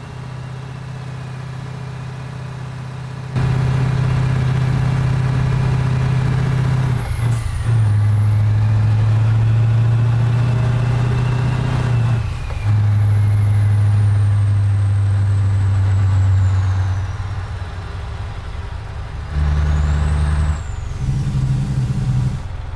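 A truck engine drones steadily, rising and falling as gears change.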